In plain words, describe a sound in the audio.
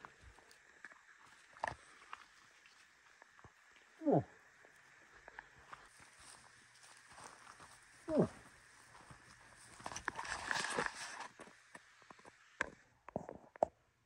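Footsteps crunch on dry grass and leaves outdoors.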